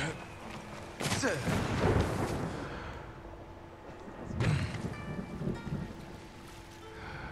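A man splashes through shallow water.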